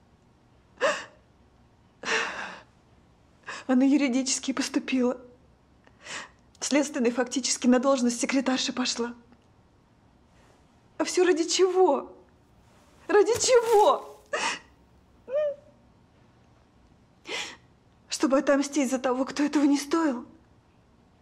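A young woman sobs and speaks tearfully, close by.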